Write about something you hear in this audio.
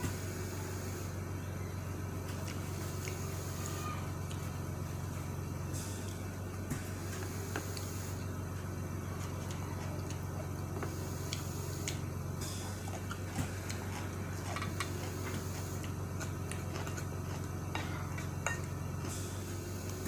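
A woman chews and eats noisily, close by.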